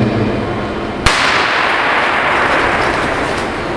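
A starter pistol fires once and echoes through a large hall.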